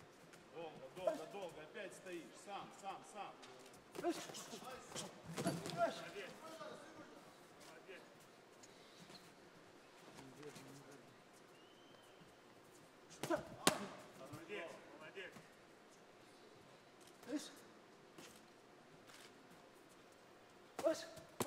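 Gloved punches land with dull thuds.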